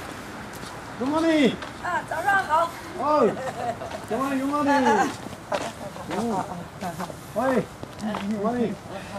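A woman calls out loudly and with animation nearby.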